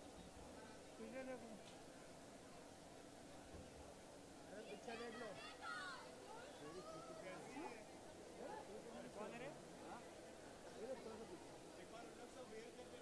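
A young woman laughs and talks.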